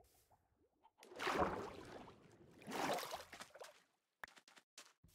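Water splashes as a figure swims through it.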